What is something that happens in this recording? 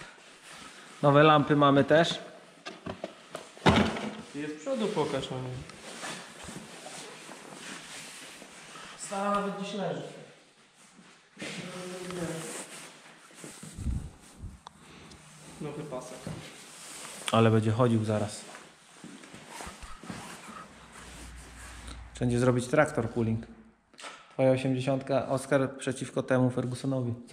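A man talks calmly and close by, as if to a microphone.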